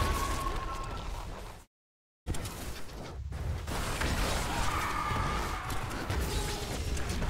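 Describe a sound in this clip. Spell effects crackle and burst in rapid succession.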